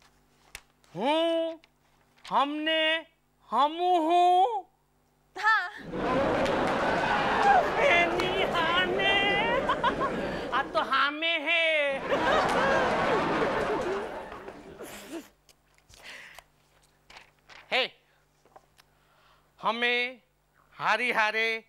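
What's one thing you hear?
A middle-aged man speaks loudly and with animation, close by.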